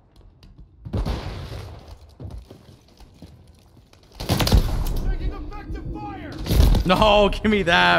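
Loud explosions boom and rumble.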